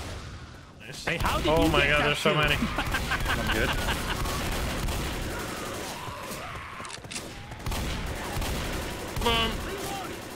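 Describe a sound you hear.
A shotgun fires loudly in repeated blasts.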